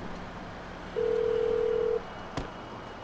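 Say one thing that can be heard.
A phone beeps with a steady tone.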